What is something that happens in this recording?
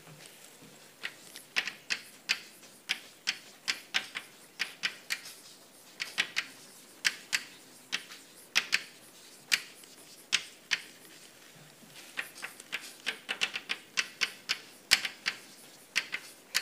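Chalk taps and scratches sharply on a blackboard.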